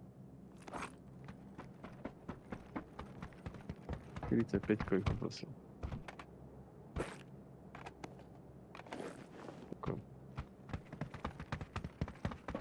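Footsteps crunch steadily on gravel and dirt.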